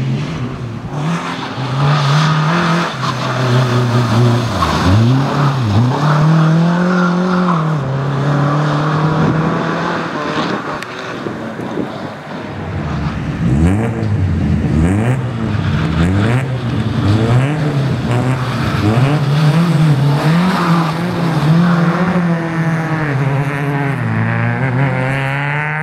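A rally car engine revs hard, rising and falling in pitch as it accelerates and brakes nearby.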